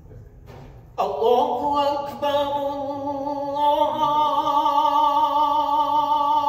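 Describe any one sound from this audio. An elderly man chants loudly and melodiously into a microphone, his voice echoing through a large hall.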